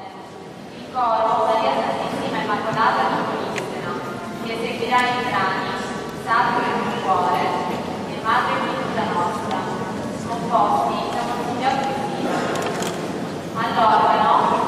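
A choir sings in a large, echoing hall.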